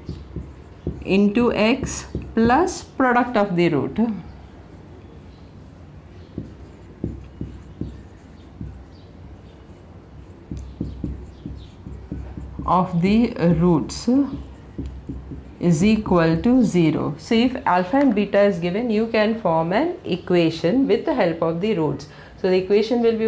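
A woman explains calmly, close by.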